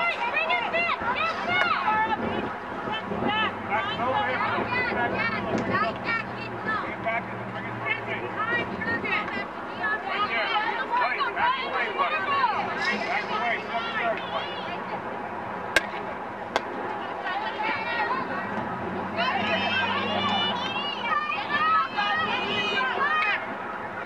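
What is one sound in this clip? A crowd of girls and adults chatter and call out outdoors.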